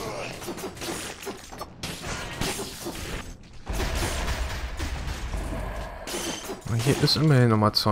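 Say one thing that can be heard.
Sword slashes and hits clatter in a video game fight.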